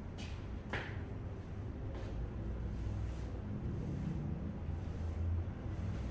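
A board eraser rubs across a blackboard.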